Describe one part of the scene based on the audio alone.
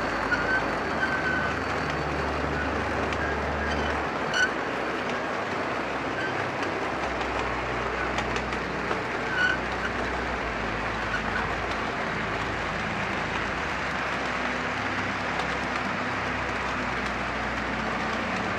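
A model train rumbles steadily along its track.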